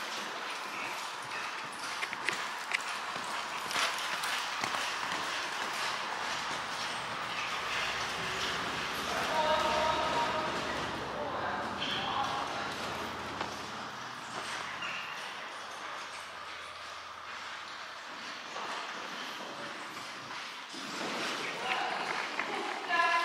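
A horse's hooves thud softly on sand in a large echoing hall.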